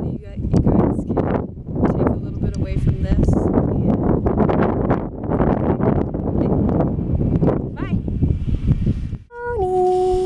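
A young woman talks calmly and cheerfully close by, outdoors.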